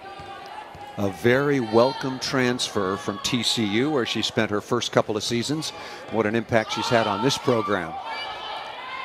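A crowd cheers and shouts loudly.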